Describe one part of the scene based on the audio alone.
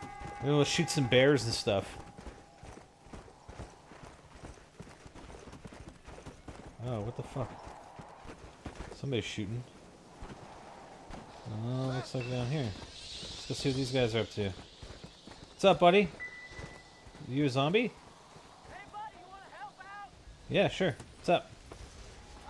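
A horse's hooves thud on snow and dirt.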